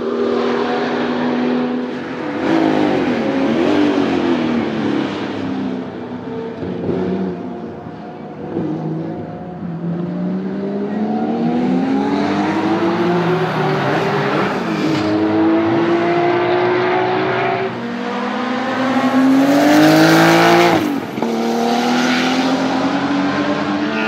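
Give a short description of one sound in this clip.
A race car engine roars loudly as it speeds past, rising and falling in pitch with gear changes.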